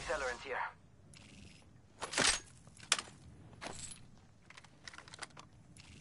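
A weapon clanks as it is picked up.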